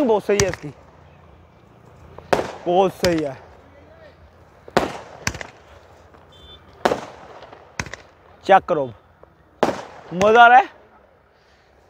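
Fireworks burst with sharp bangs in the distance.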